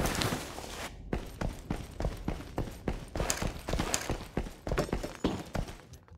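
Footsteps tap quickly on a hard metal floor.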